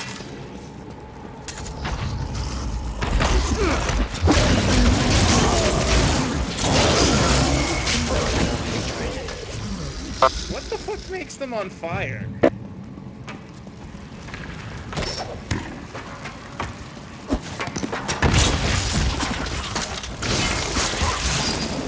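Sword blows and fiery spell blasts crash and thud in a fight.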